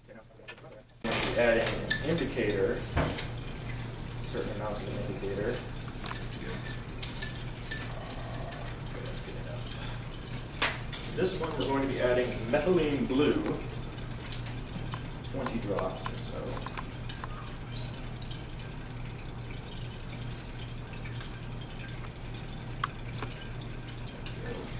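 Magnetic stirrers hum steadily.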